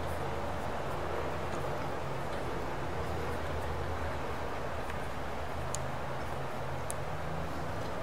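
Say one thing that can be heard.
Guitar tuning pegs click faintly as fingers turn them.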